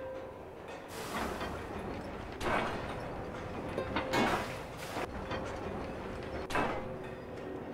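A heavy chain clanks and rattles as it swings.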